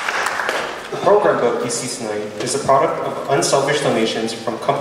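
A young man speaks into a microphone in a large hall.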